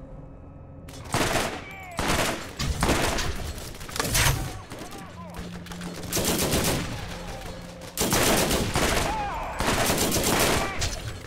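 A rifle fires loud, rapid bursts of gunshots.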